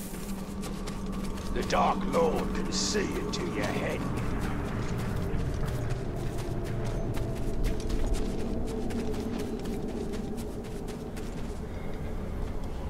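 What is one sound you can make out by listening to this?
Footsteps crunch on loose stones at a quick pace.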